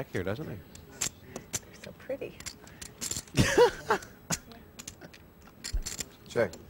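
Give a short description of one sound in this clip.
Poker chips click and clatter together in a player's hands.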